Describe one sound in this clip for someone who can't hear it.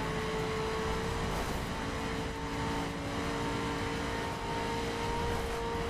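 A sports car engine roars steadily at high speed.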